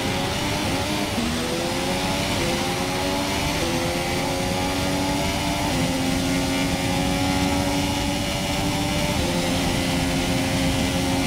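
A racing car engine screams at high revs, rising in pitch and dropping sharply with each gear change.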